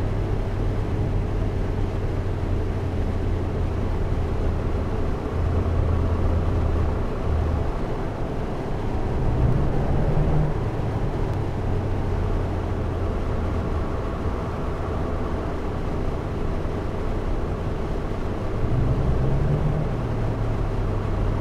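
A bus engine hums low and steady, rising and falling as it drives.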